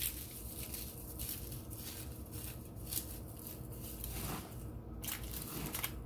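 Aluminium foil crinkles under hands.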